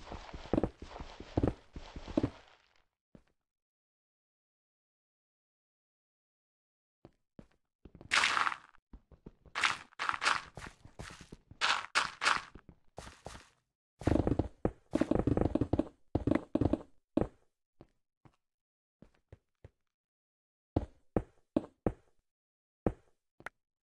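Stone blocks crack and crumble as a pickaxe digs through them.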